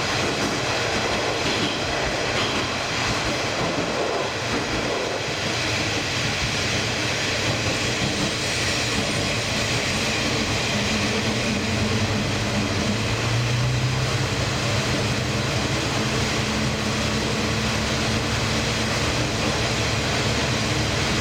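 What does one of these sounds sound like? A train rumbles and rattles along the track through a tunnel, with a loud echoing roar.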